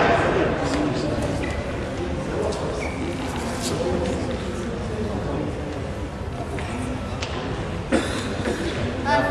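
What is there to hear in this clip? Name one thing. A ball clicks back and forth on paddles and a table in an echoing hall.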